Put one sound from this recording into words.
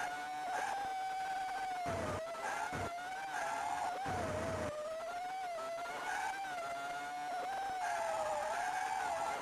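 A race car's engine whines steadily, its pitch wavering as it speeds up and slows.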